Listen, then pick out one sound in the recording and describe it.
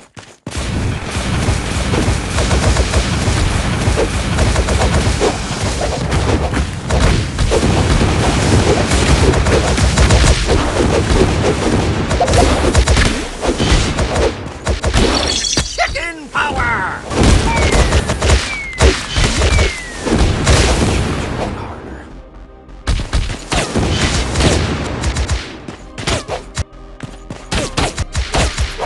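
Weapon strikes and blasts crash in a video game battle.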